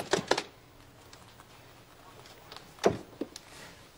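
A door opens with a thud.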